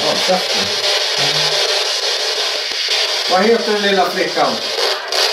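Radio static hisses steadily from a small handheld device.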